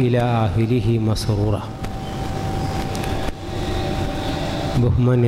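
A middle-aged man speaks calmly into a microphone, heard through a loudspeaker in an echoing room.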